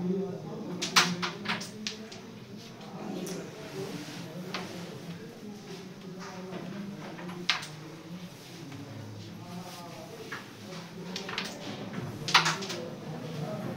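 Wooden pieces clatter and rattle against the board's edges.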